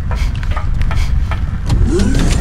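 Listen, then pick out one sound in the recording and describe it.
Footsteps run quickly across a metal floor.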